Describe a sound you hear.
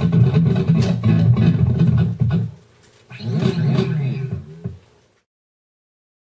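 An electric guitar plays fast, distorted riffs in short bursts.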